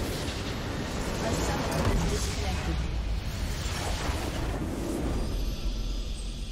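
A large crystal explodes with a loud, rumbling blast.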